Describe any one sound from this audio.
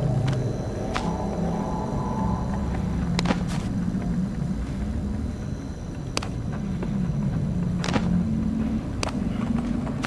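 A hand pats and slaps a hard surface.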